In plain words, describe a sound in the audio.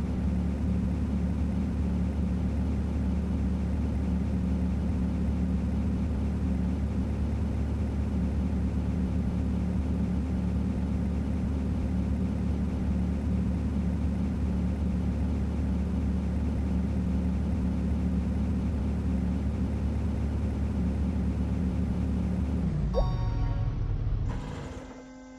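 A truck engine rumbles steadily and drops away as it stops.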